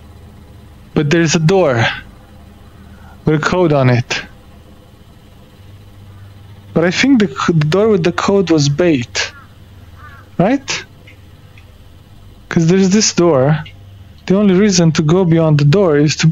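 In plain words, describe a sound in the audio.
A young man talks with animation, close to a microphone, in short bursts.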